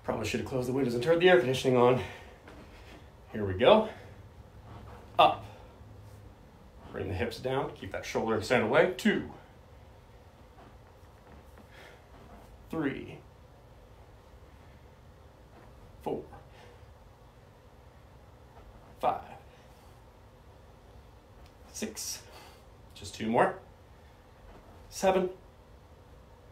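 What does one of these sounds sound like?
A man speaks calmly up close, in short bursts.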